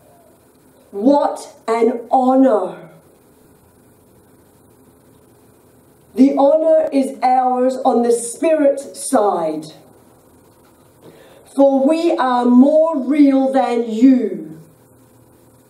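A woman speaks slowly and calmly into a microphone, with pauses between phrases.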